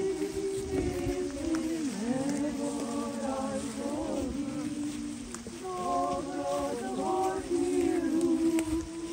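Many footsteps shuffle on dry leaves.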